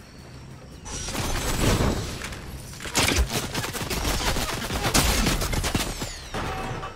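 A pickaxe strikes hard repeatedly.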